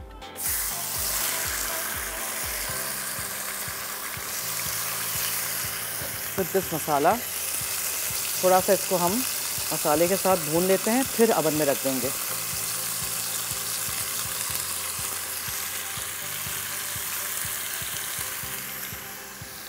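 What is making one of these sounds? Chicken sizzles in a hot pan.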